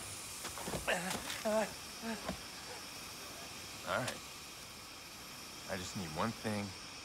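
An elderly man speaks tensely and threateningly up close.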